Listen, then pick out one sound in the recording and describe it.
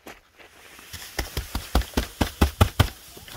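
A hand brushes snow off a tent roof with quick scraping strokes.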